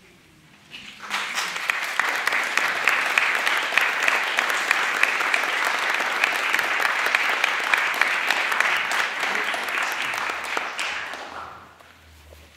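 An audience applauds loudly and steadily, then the clapping dies away.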